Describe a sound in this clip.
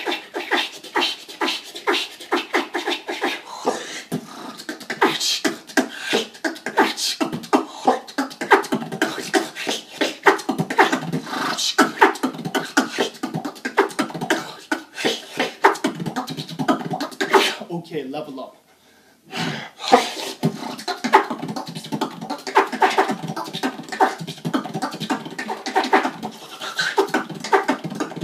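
A young man beatboxes close by, making fast, punchy drum sounds with his mouth.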